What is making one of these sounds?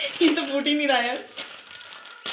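A woman speaks animatedly close by.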